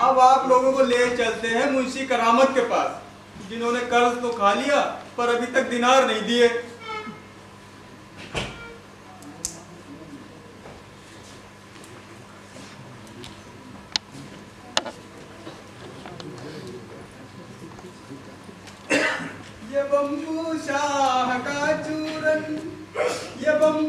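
An elderly man speaks loudly and expressively on a stage, in a hall with some echo.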